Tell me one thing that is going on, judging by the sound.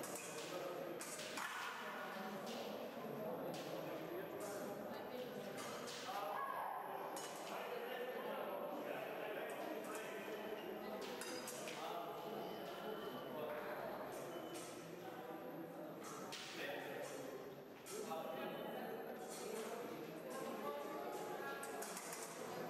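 Fencing blades clash and click.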